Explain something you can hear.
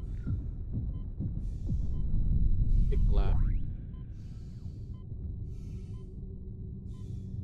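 A deep rumble drones and then eases off.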